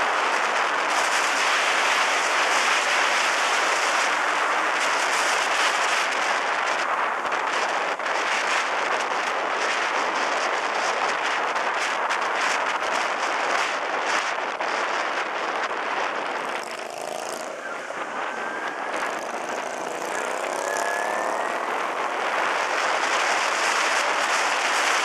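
Small motorcycles cruise along a road.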